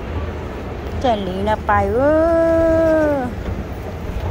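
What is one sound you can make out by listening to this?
A young girl sings a long, wavering note nearby.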